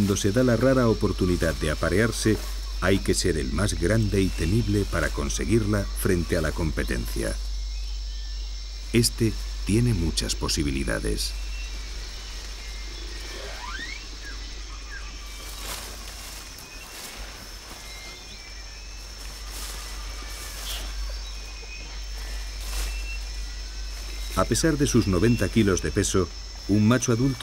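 Leaves rustle and branches creak as an orangutan climbs and swings through the trees.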